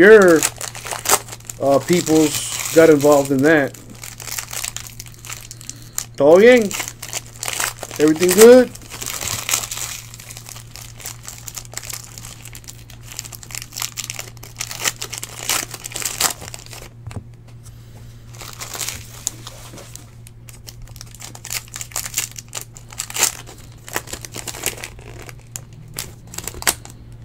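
Foil card wrappers crinkle and tear as they are ripped open.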